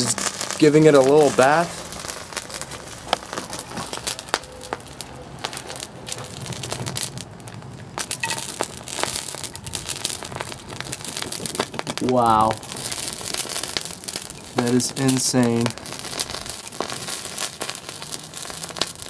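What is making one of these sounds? A fire crackles and hisses close by.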